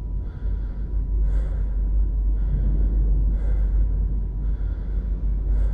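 A patient monitor sounds a repeating alarm tone.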